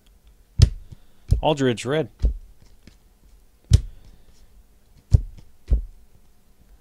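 Trading cards snap and flick as they are sorted by hand.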